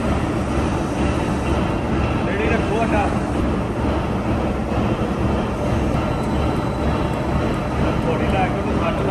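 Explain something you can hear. A large machine drones and rumbles steadily.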